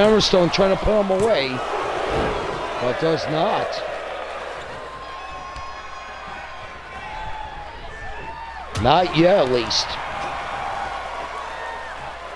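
A crowd cheers and murmurs in a large hall.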